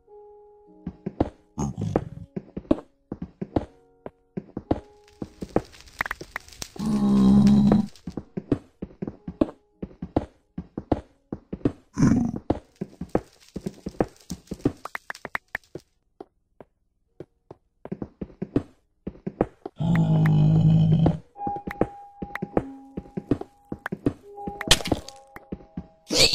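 Blocks are mined with quick repeated knocking taps.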